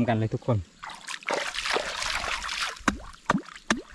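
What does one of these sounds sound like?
Water splashes loudly as something is thrown in.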